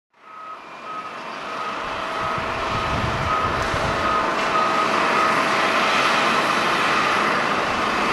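A jet airliner roars as it lands, growing louder.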